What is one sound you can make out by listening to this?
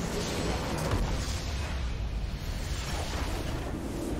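A huge explosion booms as a structure is destroyed.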